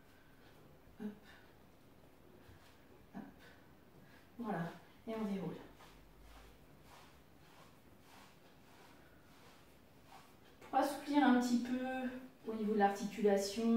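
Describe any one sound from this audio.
Shoes tap and shuffle on the floor.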